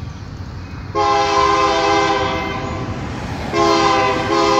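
A train horn blows in long, loud blasts, heard outdoors.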